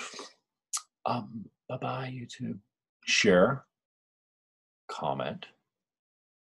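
A middle-aged man speaks with animation, close into a microphone.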